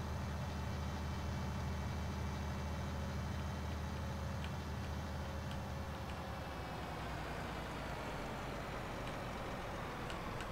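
A truck engine drones steadily, then quietens as the truck slows down.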